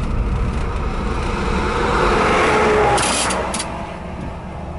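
A tanker truck rushes past in the opposite direction.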